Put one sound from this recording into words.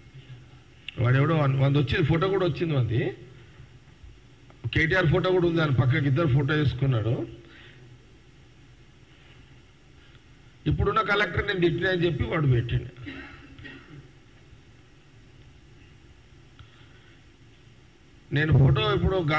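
A middle-aged man speaks forcefully into a microphone, in short bursts with pauses.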